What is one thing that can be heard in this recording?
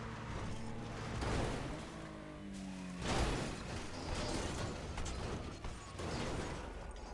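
A car crashes and tumbles over, metal banging on the ground.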